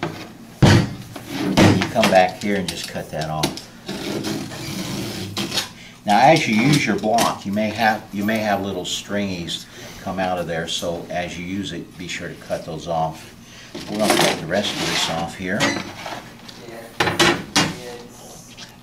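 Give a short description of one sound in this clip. A man talks calmly and explains, close by.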